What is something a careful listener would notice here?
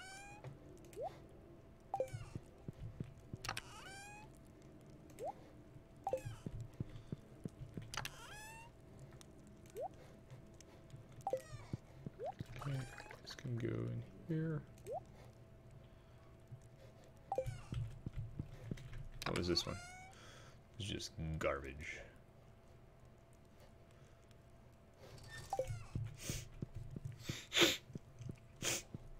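Short electronic chimes blip as game menus open and close.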